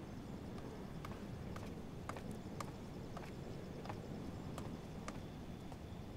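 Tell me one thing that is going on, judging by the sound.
Footsteps tap on pavement at a walking pace.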